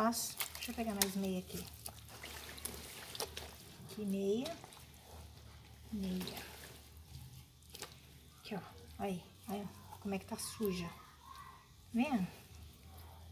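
Wet clothes squelch and rustle as hands move them about.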